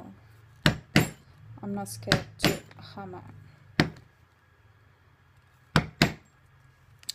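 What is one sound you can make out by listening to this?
A metal tool taps sharply on leather.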